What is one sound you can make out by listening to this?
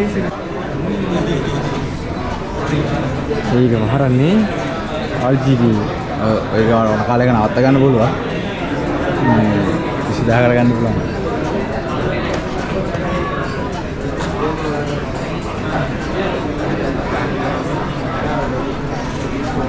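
A crowd murmurs in an echoing hall.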